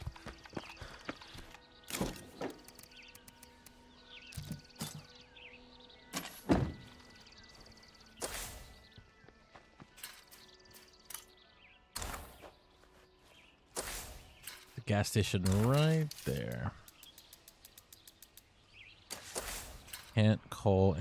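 Short interface clicks and swooshes sound as menus open and close.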